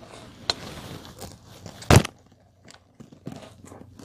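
A woman bites and chews food up close.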